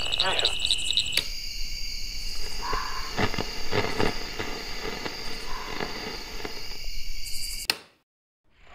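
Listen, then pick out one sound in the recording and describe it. A radio crackles with static as its dial is turned.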